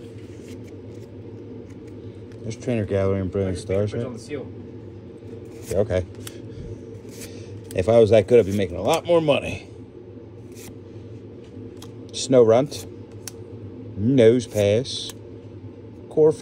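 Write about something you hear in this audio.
Trading cards slide and flick softly between fingers, close by.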